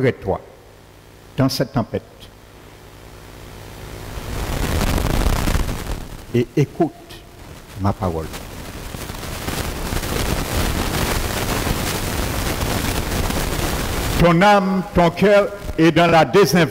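A middle-aged man speaks calmly through a microphone, with pauses.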